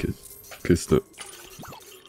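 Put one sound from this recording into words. Small plastic pieces scatter and clink with a bright jingle.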